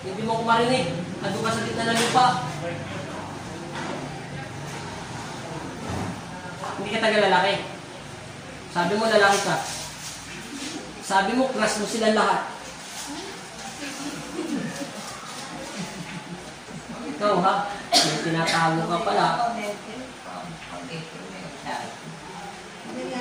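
Several women talk and laugh nearby.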